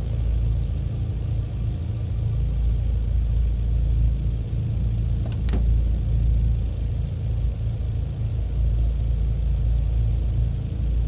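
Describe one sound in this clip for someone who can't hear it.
A five-cylinder racing car engine idles.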